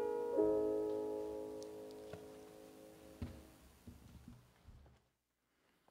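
A piano chord rings out and slowly fades in an echoing hall.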